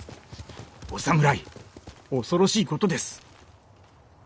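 A man speaks with strain.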